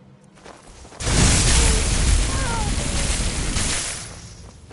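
Fire bursts and whooshes.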